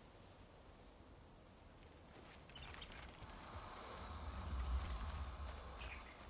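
Footsteps crunch on dirt and leaves.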